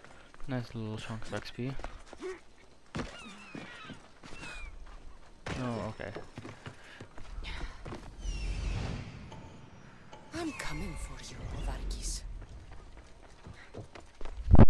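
Footsteps thud quickly across wooden planks.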